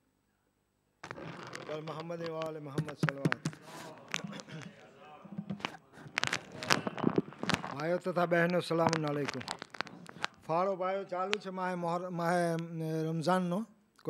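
An elderly man chants through a microphone in a melodic, drawn-out voice.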